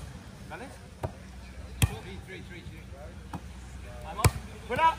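Hands strike a volleyball with sharp slaps.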